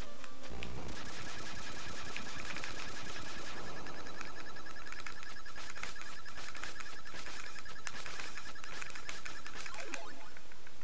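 Retro game sound effects of slashing blips.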